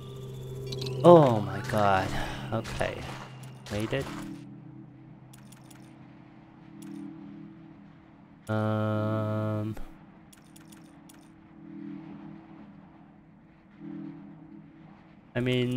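A low electronic tone hums and chimes as a menu opens.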